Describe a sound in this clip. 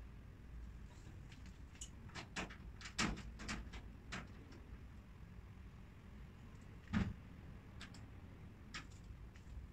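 A woman fits parts into a wooden cabinet with clicks and knocks.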